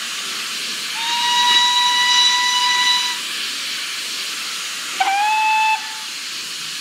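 A steam locomotive whistle blows sharply, twice.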